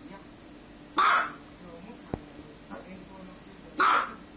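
A small dog barks sharply, twice.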